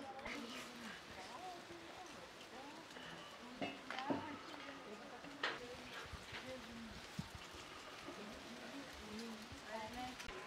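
Hens cluck outdoors.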